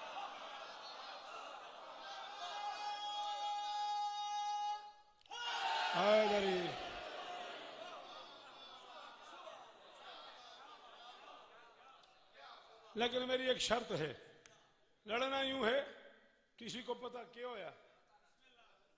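A man speaks through a microphone with fervour, his words ringing out over loudspeakers.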